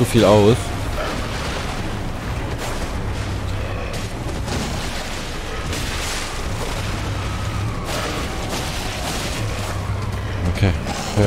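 A large beast snarls and growls.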